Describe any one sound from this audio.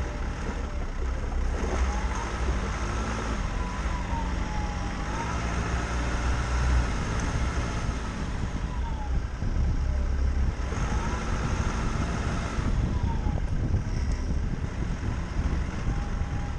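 A vehicle engine rumbles and revs steadily while driving.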